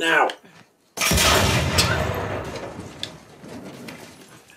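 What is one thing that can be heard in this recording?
A glass bottle smashes and shatters.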